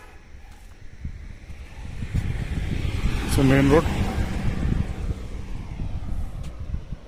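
A car drives past close by.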